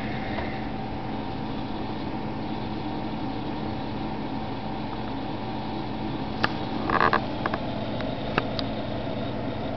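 Computer fans hum steadily with a low whir.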